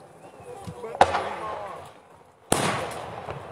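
Loud firework blasts boom and echo outdoors.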